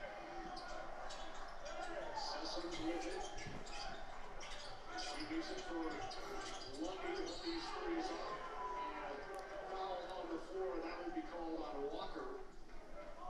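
A television plays a broadcast nearby.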